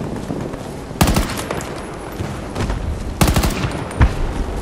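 A rifle fires short bursts of loud shots.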